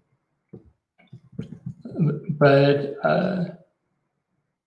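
A young man speaks calmly through a computer microphone on an online call.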